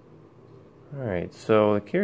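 A button clicks when pressed.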